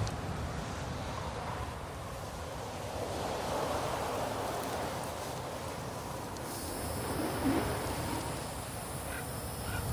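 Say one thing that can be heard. Strong wind gusts and roars across open ground.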